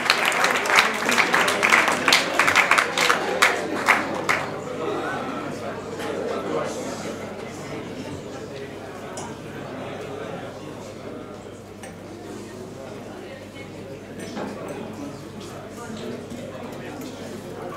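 An electric bass plays.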